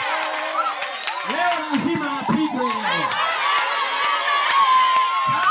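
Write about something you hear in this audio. A crowd of women sings and cheers loudly.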